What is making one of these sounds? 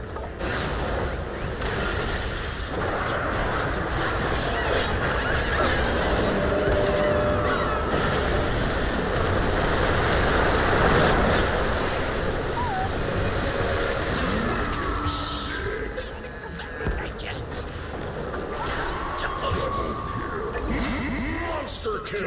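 Magic spells burst and crackle amid clashing weapons in a game battle.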